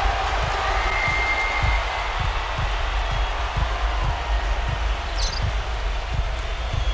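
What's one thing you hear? A basketball bounces on a hardwood court in a steady rhythm.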